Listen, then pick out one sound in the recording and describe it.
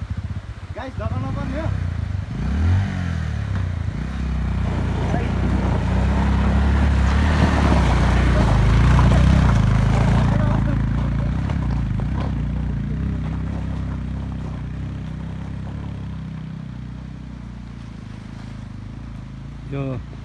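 A motorcycle engine rumbles and revs, then fades into the distance as the bike rides away.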